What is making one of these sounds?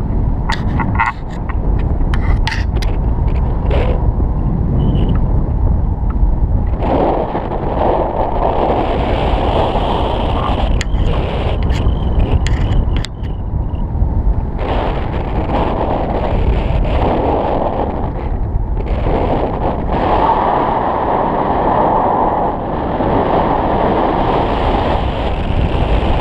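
Strong wind rushes and buffets loudly throughout.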